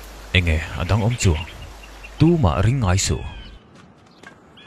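An older man speaks gravely and close by.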